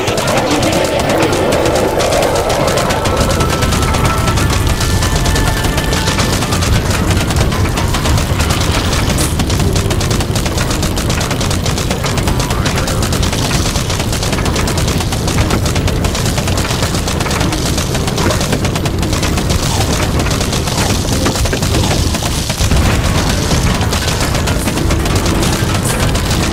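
Rapid shooting and impact sounds rattle on without pause.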